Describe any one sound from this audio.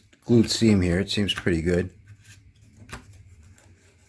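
Fingers press and rustle stiff pleated paper.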